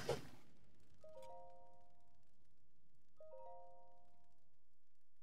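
Short soft chimes ring twice.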